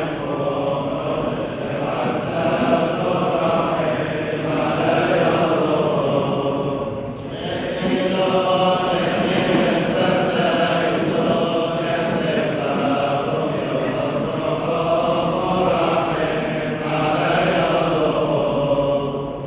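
A large group of men chants together in a reverberant hall.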